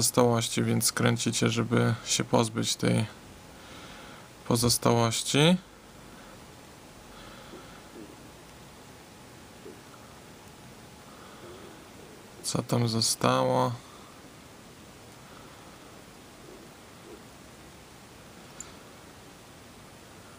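A cap scrapes as it is twisted on a glass ink bottle.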